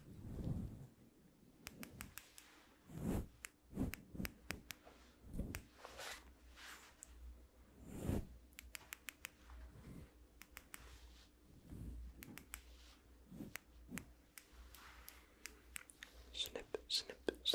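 A young man whispers softly close to a microphone.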